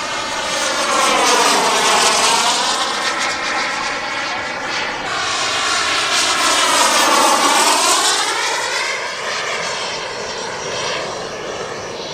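A jet engine roars loudly overhead, its pitch sweeping down and up as the jet passes.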